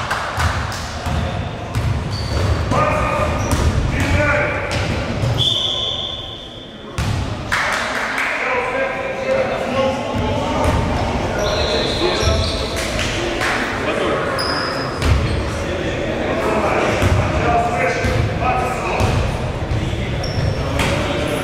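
A basketball bounces on the floor, echoing in a large hall.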